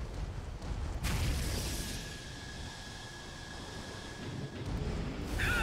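A jet thruster roars and hisses, then cuts out.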